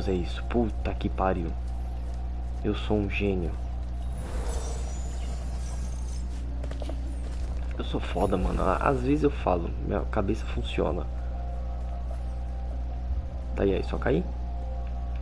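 A young man talks casually into a headset microphone, close by.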